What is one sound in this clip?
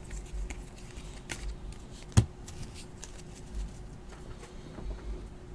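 Trading cards rustle and flick as they are shuffled by hand.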